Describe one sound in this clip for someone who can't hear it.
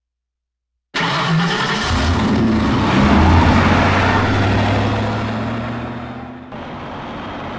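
A car engine revs loudly and roars away.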